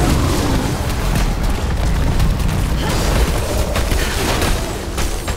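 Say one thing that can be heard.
Spell blasts and sword strikes crackle and thud in a game battle.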